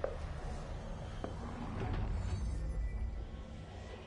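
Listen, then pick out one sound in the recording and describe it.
Debris crashes and clatters.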